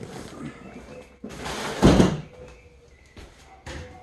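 A cardboard box scrapes and thumps onto a table.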